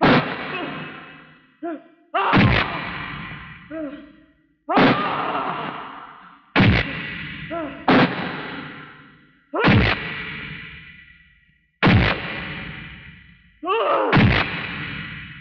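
Loud punches land with sharp, echoing thuds, one after another.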